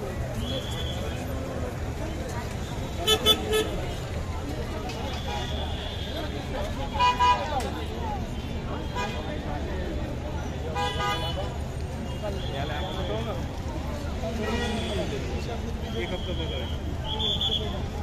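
A busy crowd chatters outdoors all around.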